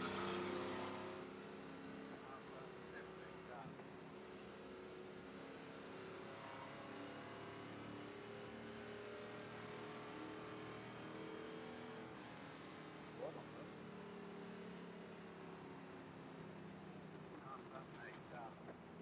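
A race car engine drones steadily at speed.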